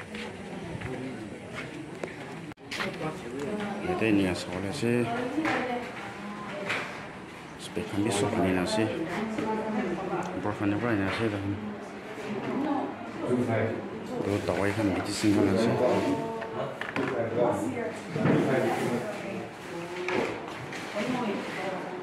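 Several men and women talk nearby.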